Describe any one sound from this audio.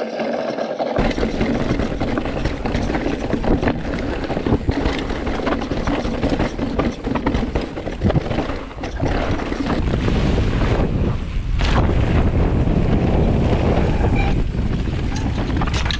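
Bike tyres rattle and crunch over a rough, rocky trail.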